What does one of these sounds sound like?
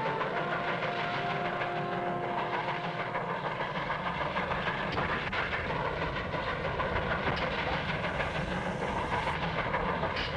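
A steam locomotive chugs along steadily.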